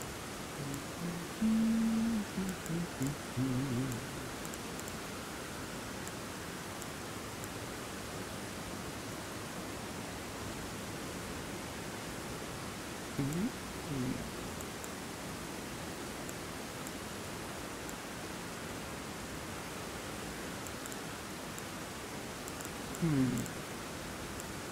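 Soft menu clicks tick now and then as a selection moves.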